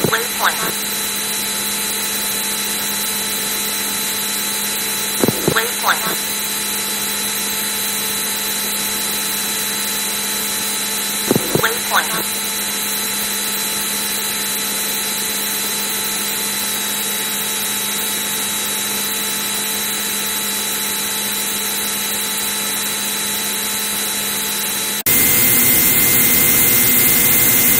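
A synthesized jet fighter engine drones in an old computer game.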